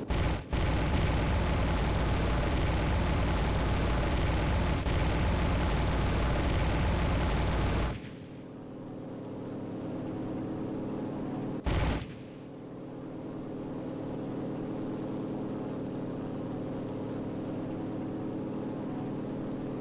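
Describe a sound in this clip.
An aircraft engine drones steadily, louder at first and then muffled.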